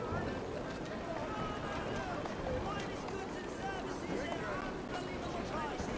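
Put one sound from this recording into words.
Horse hooves clop on cobblestones as a carriage passes.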